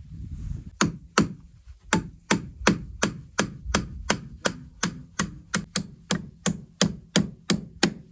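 A hammer taps on wood.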